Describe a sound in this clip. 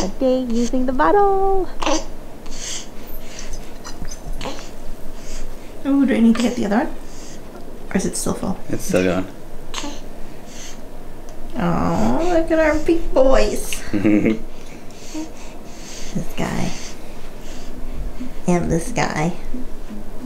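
A baby sucks on a bottle.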